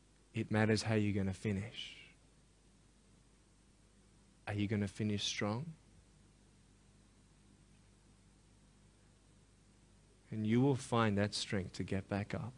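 A young man speaks with emphasis through a headset microphone, pausing between phrases.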